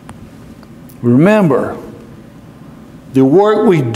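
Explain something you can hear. An elderly man speaks with emphasis into a microphone in a large, echoing hall.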